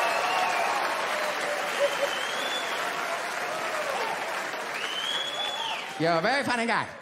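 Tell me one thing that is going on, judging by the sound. An audience cheers, whistles and applauds in a large hall.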